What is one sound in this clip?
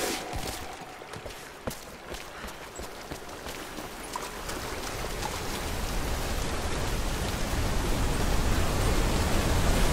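A waterfall rushes nearby, growing louder.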